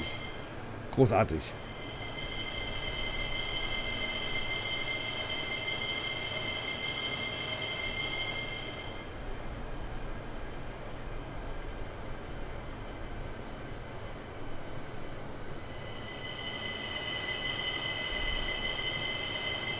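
An electric motor whines with a steady high hum.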